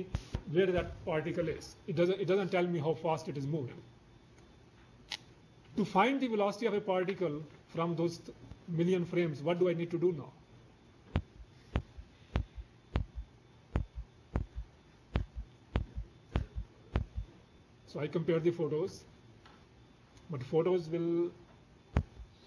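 An elderly man speaks calmly to an audience, heard through a microphone.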